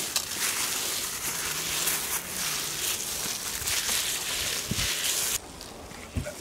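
Gloved hands rub a wet spice paste over raw meat with soft squelching and rustling.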